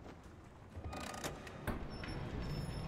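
A metal lever clanks as it is pulled down.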